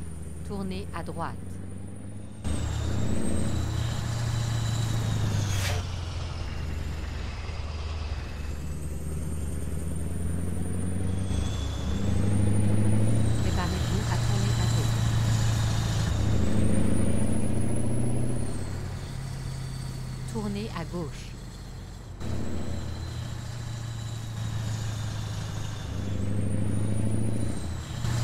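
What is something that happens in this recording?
A heavy truck engine rumbles steadily, rising and falling in pitch as it revs.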